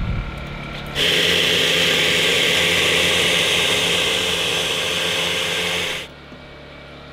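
A juicer motor whirs loudly and steadily.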